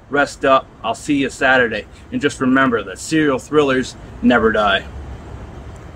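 A man speaks loudly and forcefully, close to the microphone.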